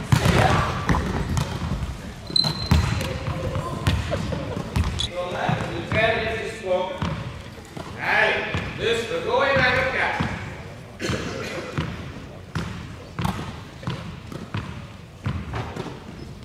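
A volleyball is struck with sharp thumps that echo.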